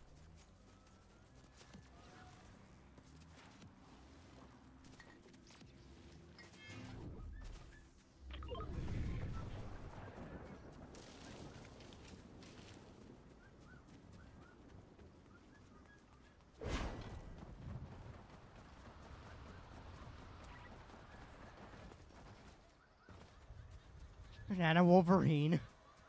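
Footsteps patter quickly on dirt in a video game.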